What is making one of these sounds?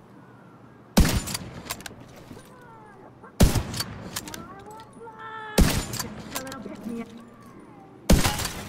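A sniper rifle fires sharp single shots.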